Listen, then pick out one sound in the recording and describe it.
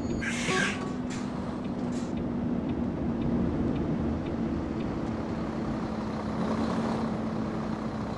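A truck engine idles with a low steady hum.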